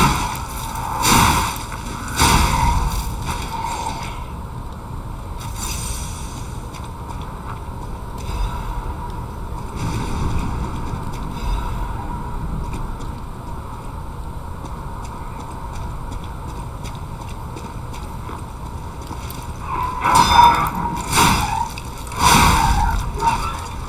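A blade swishes and strikes hard in short, loud bursts.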